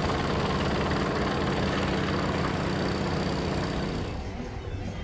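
An electrical box hums steadily close by.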